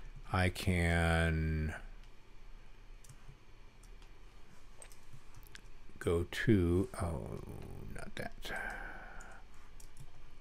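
An elderly man speaks calmly and close to a microphone, in short phrases.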